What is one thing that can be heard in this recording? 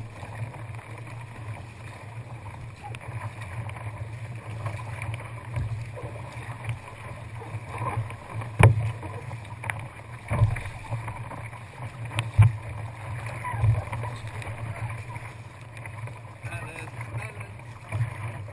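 Wind rumbles steadily across the water outdoors.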